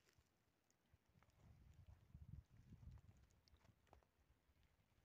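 Small stones crunch underfoot.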